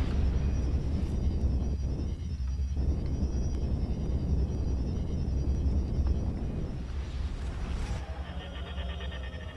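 A deep, steady rumble roars as a spacecraft surges through a warp jump.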